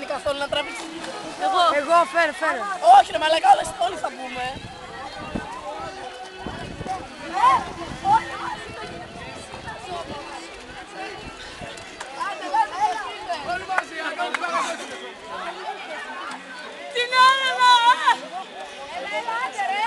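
Young people shout and cheer outdoors.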